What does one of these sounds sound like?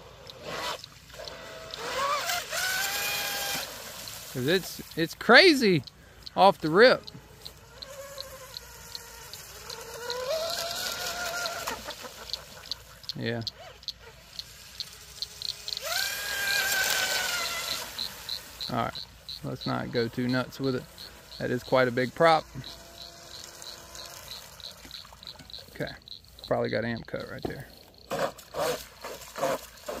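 A small model boat engine whines loudly, its pitch rising and falling as it speeds past over water.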